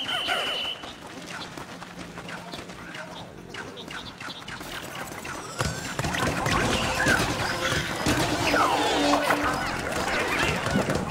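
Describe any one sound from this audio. Small creatures chirp and squeak in high little voices.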